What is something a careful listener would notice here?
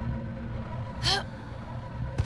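A young woman grunts with effort.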